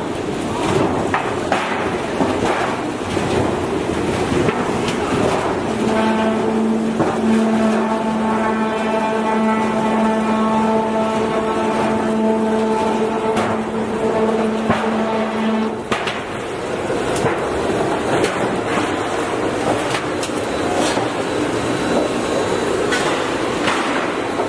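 A roll forming machine rumbles and clatters steadily in a large echoing hall.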